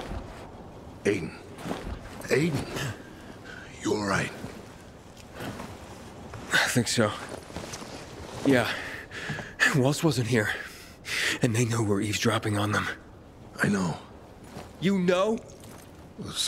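A man speaks urgently and close by.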